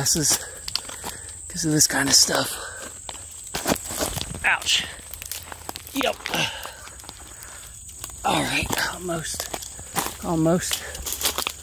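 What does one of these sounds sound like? Footsteps crunch over dry leaves and twigs.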